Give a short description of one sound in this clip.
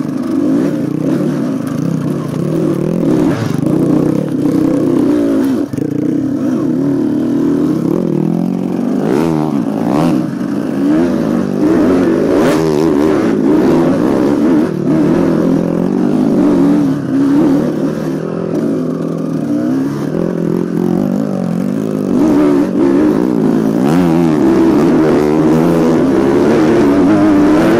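Tyres bump and scrape over a rough dirt trail.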